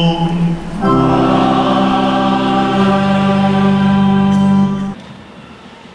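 A crowd sings together outdoors.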